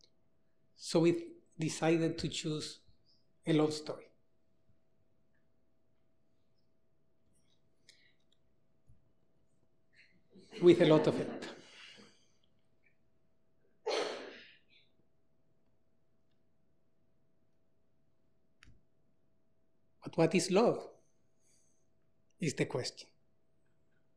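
A man speaks slowly and calmly into a microphone in a large echoing hall, with long pauses.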